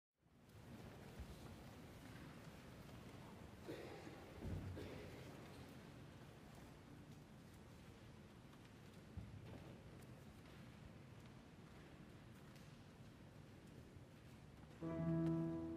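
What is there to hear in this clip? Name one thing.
An audience rustles and murmurs quietly in a large echoing hall.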